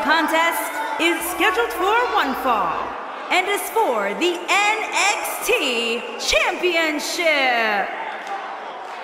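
A woman announces loudly through a microphone.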